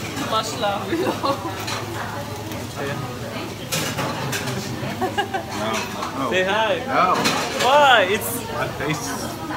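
Several people talk and laugh with animation close by.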